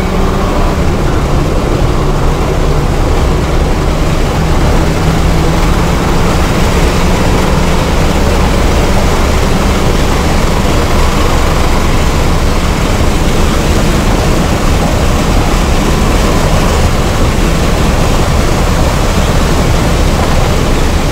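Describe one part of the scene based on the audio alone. Wind roars past the car at high speed.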